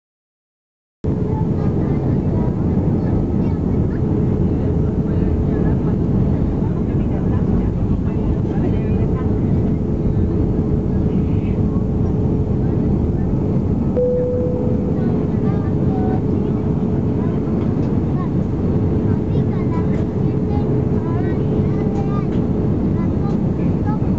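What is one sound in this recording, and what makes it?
Air rushes loudly past the outside of an aircraft.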